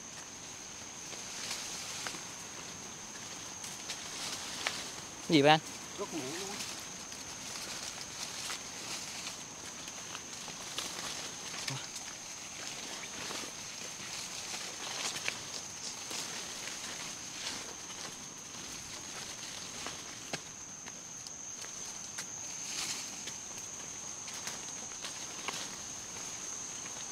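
Leaves rustle as a man brushes through bushes.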